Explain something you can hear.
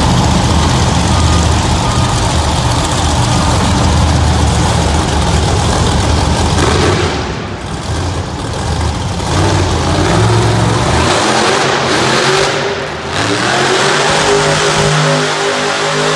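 A monster truck engine roars loudly and revs in a large echoing arena.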